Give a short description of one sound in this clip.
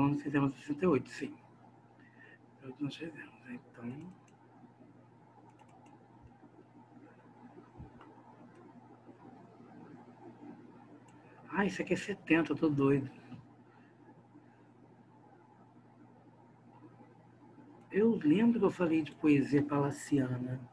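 A man speaks calmly over an online call, in bursts with pauses.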